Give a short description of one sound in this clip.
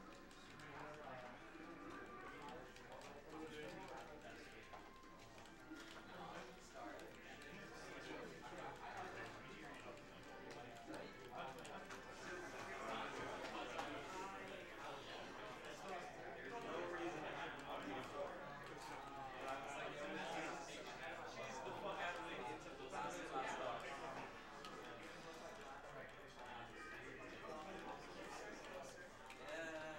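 A crowd chatters and murmurs throughout a busy, echoing hall.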